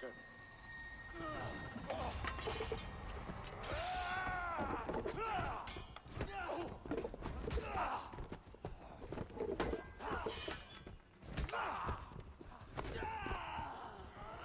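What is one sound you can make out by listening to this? Men grunt and shout as they struggle.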